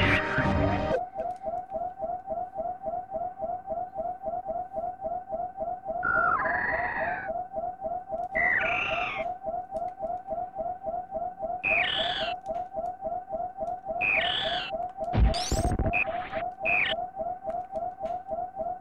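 A low-health alarm beeps rapidly and steadily in a video game.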